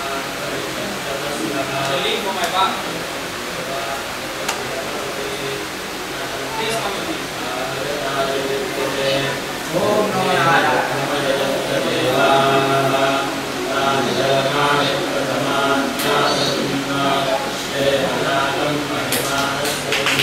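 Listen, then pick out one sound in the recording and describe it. A man speaks with feeling in a room with an echo.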